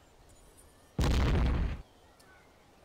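Muskets fire in a sudden loud volley.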